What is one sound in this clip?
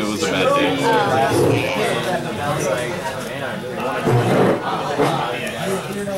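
Playing cards are shuffled by hand with a soft, rapid shuffling.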